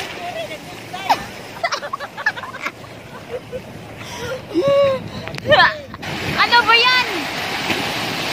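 Young people call out and laugh in the water.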